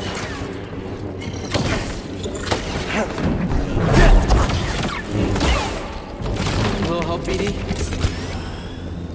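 Energy swords hum and clash with sharp crackling strikes.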